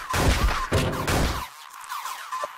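A loud thudding punch sound effect plays from a video game.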